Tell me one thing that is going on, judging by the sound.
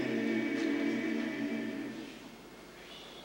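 A large choir sings a held chord in a hall.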